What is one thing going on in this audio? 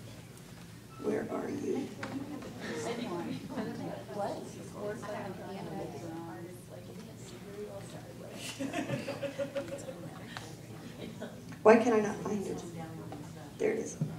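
A man speaks into a handheld microphone, heard over loudspeakers in a room with some echo.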